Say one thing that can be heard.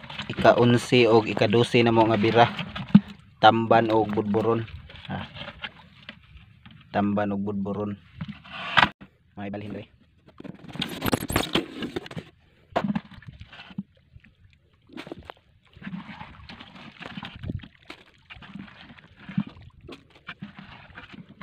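Wet fish slap and rustle against each other in a plastic bucket.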